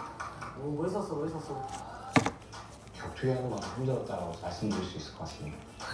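Plastic containers rustle and tap on a table.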